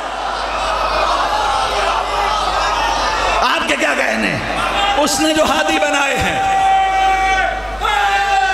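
A man chants loudly through a microphone in a large echoing hall.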